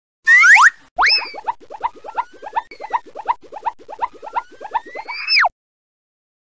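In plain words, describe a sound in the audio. A yo-yo string whirs with a quick ticking rattle.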